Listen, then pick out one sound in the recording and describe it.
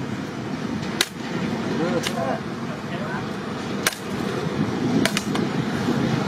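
A machete chops into a bamboo stalk with sharp thwacks.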